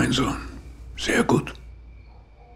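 An elderly man speaks intently up close.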